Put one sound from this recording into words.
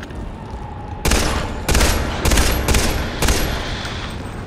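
A rifle fires several loud shots in quick succession.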